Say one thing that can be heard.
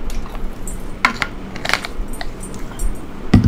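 A bottle cap clicks and rattles as it is twisted.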